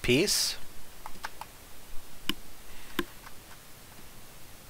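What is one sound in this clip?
Short game blips sound as a dialogue box opens.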